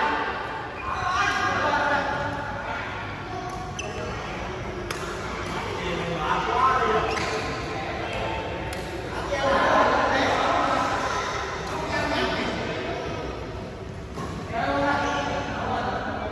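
Badminton rackets strike shuttlecocks with sharp pops in an echoing hall.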